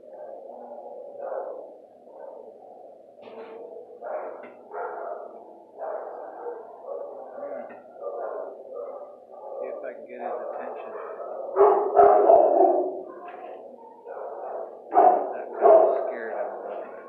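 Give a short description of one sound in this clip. A dog whines steadily nearby.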